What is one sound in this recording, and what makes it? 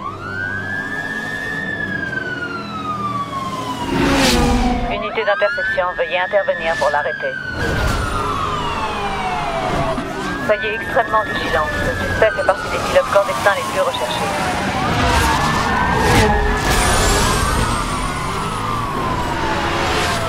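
Sports car engines roar at high speed.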